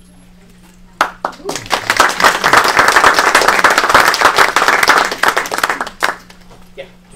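An audience claps loudly.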